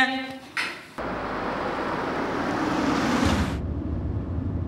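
A car speeds past on a road.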